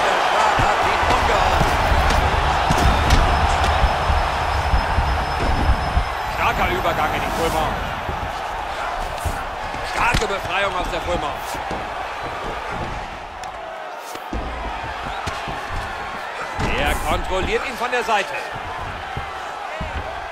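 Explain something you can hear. Punches land with heavy thuds again and again.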